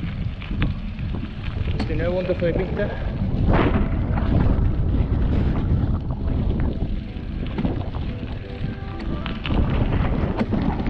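Bicycle tyres crunch over a gravel track.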